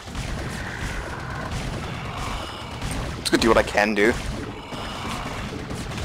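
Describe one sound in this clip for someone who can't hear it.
Video game battle effects crackle and screech.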